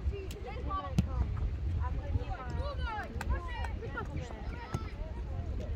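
A ball is kicked with a dull thump.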